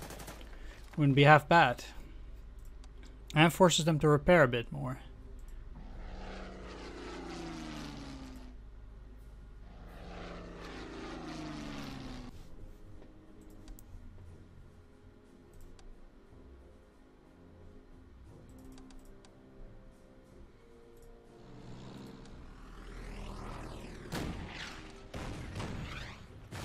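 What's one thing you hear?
Artillery guns fire in loud bursts.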